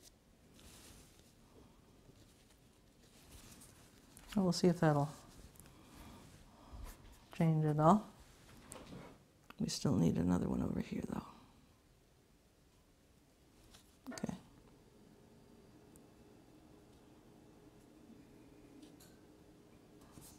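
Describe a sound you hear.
A paintbrush brushes softly across paper.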